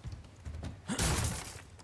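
A knife slashes and strikes wood with a sharp crack.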